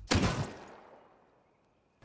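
A gun fires a single loud shot that rings out and fades.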